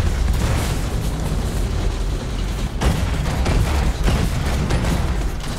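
Rapid gunfire blasts in a video game.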